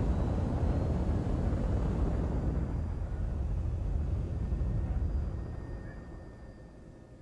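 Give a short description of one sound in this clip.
A spacecraft engine rumbles deeply and slowly fades away.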